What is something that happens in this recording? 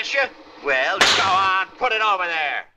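A man slaps another man's face with a loud smack.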